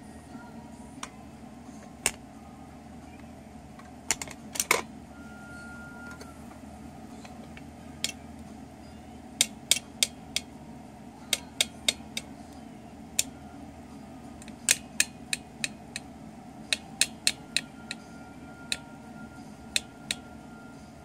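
A plastic toy drill clicks sharply, again and again.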